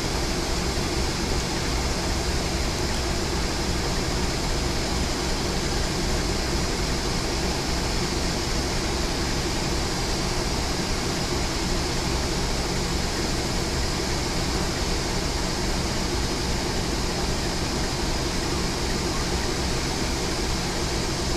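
A diesel locomotive engine rumbles loudly as it approaches.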